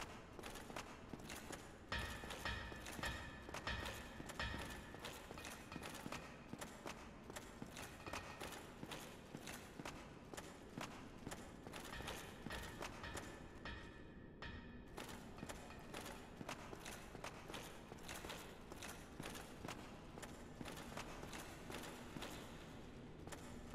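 Armored footsteps clank steadily on stone.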